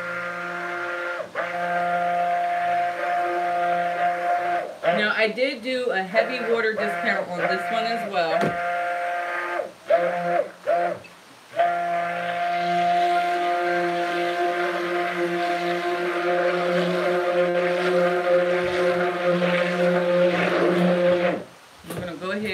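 A stick blender whirs steadily in a pot.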